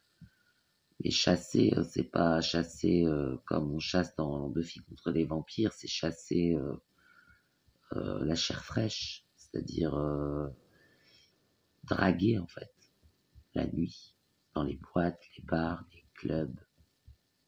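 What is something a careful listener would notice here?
A young man speaks close to the microphone, calmly and casually.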